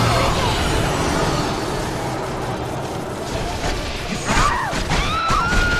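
Magic energy whooshes and crackles.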